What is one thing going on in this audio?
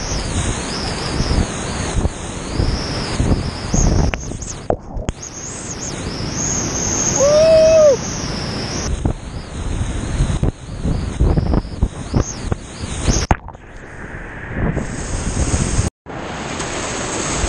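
Water splashes against a kayak and paddle.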